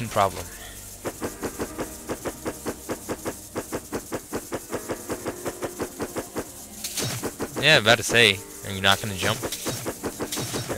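A blade swishes through the air again and again.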